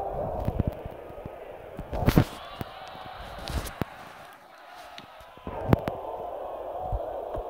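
A stadium crowd murmurs and cheers in the distance.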